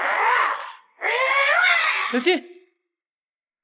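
A young man speaks urgently.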